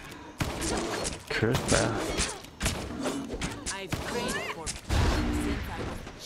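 Weapons strike and clash in a fight.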